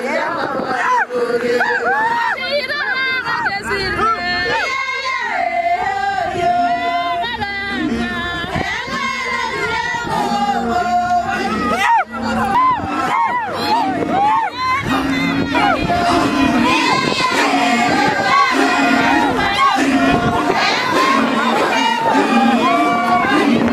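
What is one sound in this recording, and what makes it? A group of men sing and chant together, close by.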